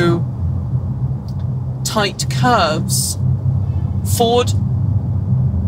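A car's interior hums steadily with a low road rumble.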